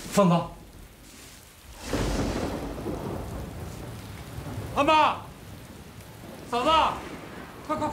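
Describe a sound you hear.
A young woman calls out weakly and breathlessly, close by.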